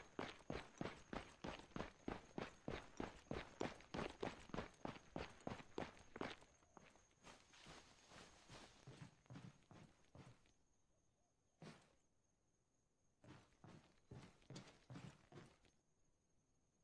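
Boots run on pavement.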